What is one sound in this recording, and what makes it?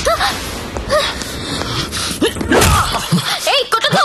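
A woman cries out in alarm.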